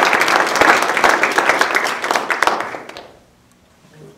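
An audience claps loudly in a room.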